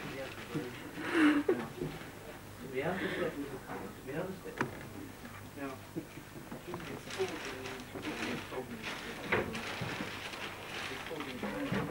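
A man talks in a room nearby.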